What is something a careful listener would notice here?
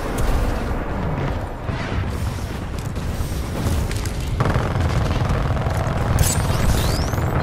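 Heavy footsteps thud quickly as a soldier runs.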